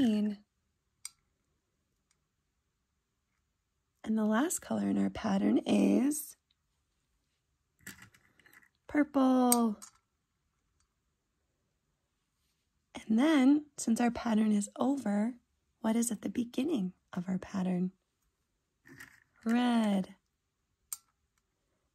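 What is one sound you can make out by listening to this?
Small candies click softly onto a plate.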